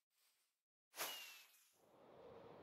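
A firework rocket launches with a loud whoosh.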